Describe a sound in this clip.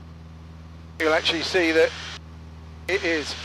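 An older man speaks calmly over a headset intercom.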